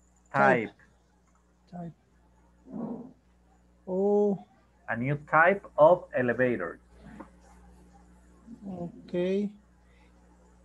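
A man speaks with animation over an online call, heard through a microphone.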